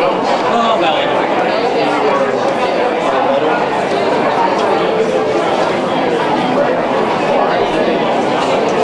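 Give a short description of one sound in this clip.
A crowd of men and women chatter all at once in a large room.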